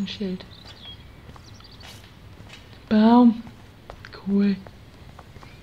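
A woman talks in short, drawn-out bursts close to a microphone.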